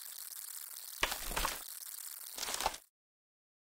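A cloth doll thuds heavily to the ground.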